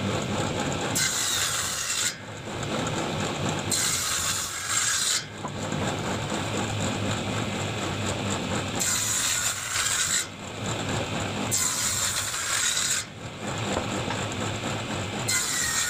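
A table saw cuts through wood pieces in repeated loud, rasping bursts.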